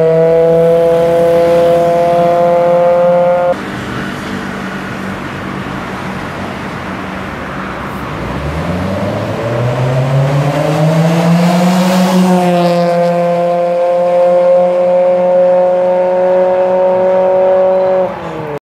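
A small engine hums steadily nearby, then revs up in pitch.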